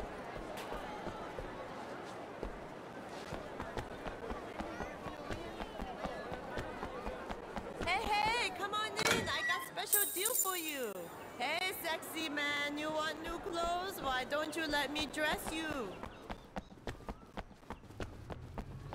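Footsteps run quickly over hard pavement.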